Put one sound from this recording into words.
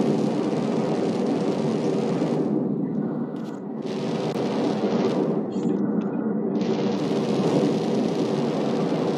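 A jetpack engine roars steadily.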